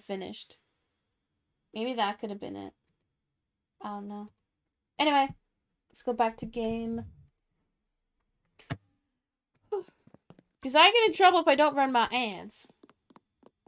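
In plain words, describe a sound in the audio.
A young woman talks with animation through a microphone, close by.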